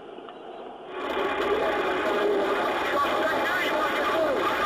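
A large vehicle fire roars nearby.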